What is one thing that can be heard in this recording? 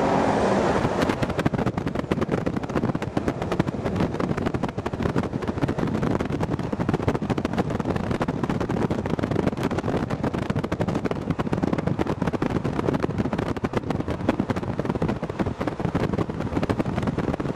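Wind buffets and rushes loudly past an open car window.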